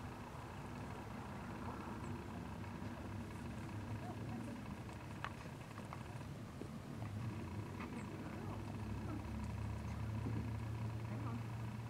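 Wind rumbles outdoors against the microphone.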